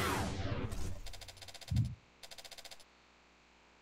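Short electronic beeps chirp several times.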